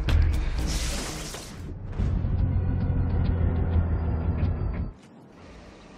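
Water splashes and crackles with electric sparks.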